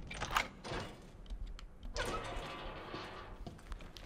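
A metal gate creaks open.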